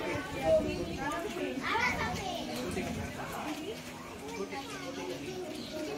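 A young girl talks to a dog.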